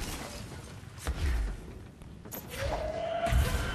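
Debris crashes and scatters.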